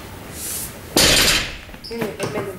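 A loaded barbell drops onto the floor with a heavy clank.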